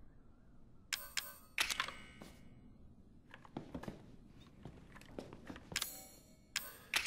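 Short electronic beeps click as a menu is browsed.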